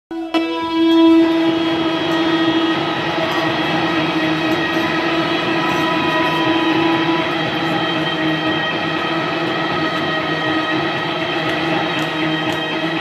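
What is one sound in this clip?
An electric guitar is strummed.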